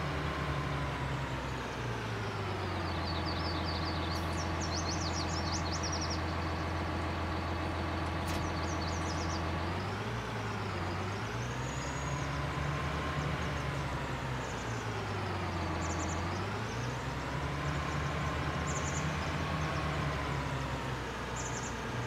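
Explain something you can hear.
A tractor engine rumbles steadily and revs up and down.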